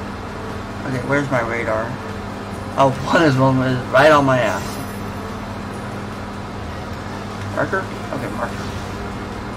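A man speaks briefly and animatedly into a nearby microphone.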